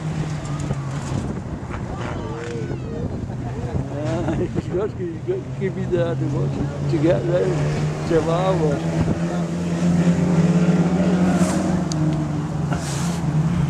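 Stock car engines drone from a distance as the cars race around a dirt track outdoors.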